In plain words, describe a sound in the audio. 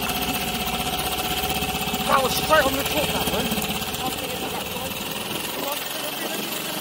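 An outboard motor idles with a low rumble.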